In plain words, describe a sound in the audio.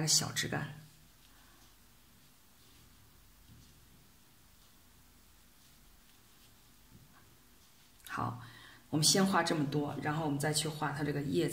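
A brush strokes softly across paper.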